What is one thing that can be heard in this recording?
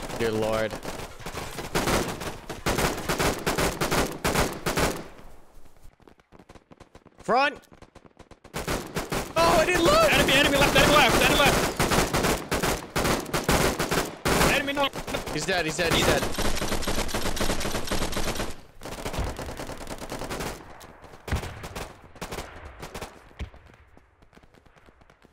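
Footsteps crunch quickly on sand and gravel.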